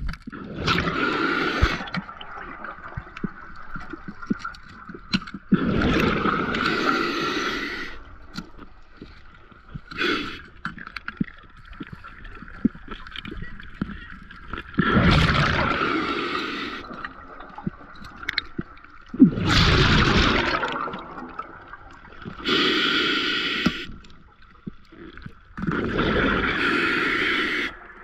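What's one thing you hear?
A diver breathes through a regulator, with bubbles gurgling loudly in bursts underwater.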